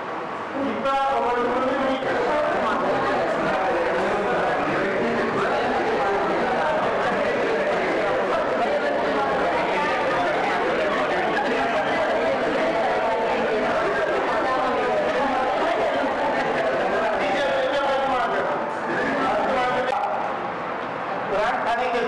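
A crowd of women and men chatter loudly all around in an echoing room.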